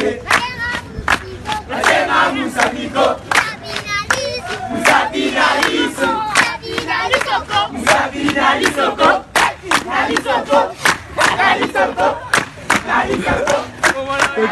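Hands clap in a quick, lively rhythm.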